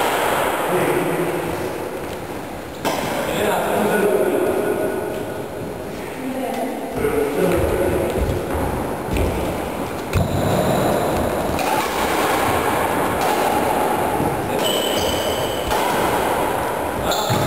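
Badminton rackets strike a shuttlecock in an echoing sports hall.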